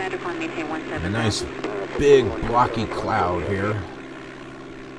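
A middle-aged man talks with animation close to a headset microphone.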